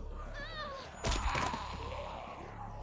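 A hammer strikes a zombie with a heavy thud.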